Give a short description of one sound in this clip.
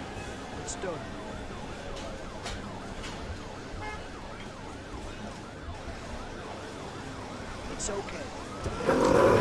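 A fire engine siren wails in quick, warbling sweeps.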